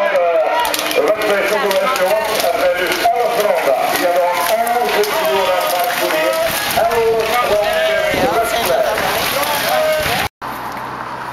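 A pack of racing bicycles whirs past.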